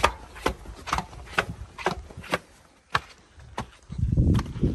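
Footsteps climb concrete stairs.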